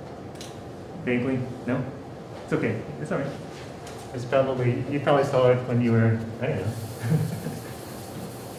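A man lectures calmly, his voice muffled by a mask.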